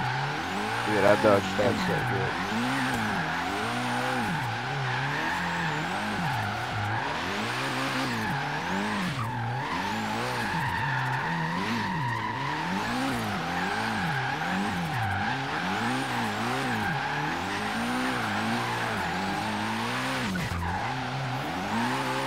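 A car engine revs up and down over and over.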